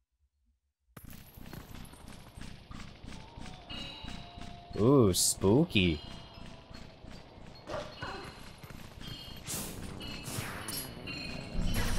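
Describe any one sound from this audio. A wolf's paws patter quickly over dirt.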